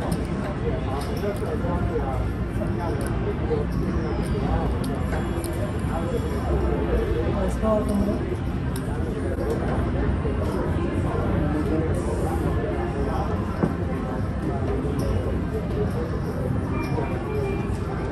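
A crowd of people chatters in a large busy room.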